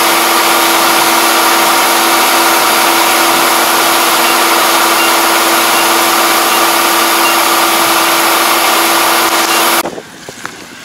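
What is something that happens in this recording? A combine harvester's engine and auger drone.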